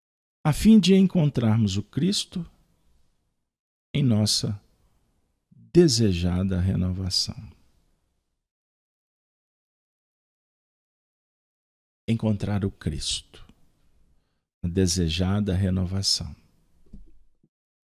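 A man speaks calmly and clearly into a microphone, with pauses.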